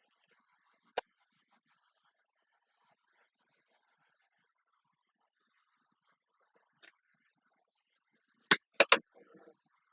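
A plastic bottle crackles and clicks as it is handled.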